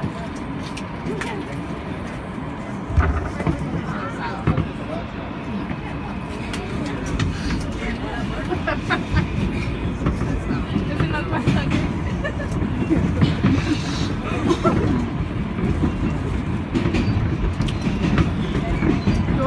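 A subway train rumbles along its track.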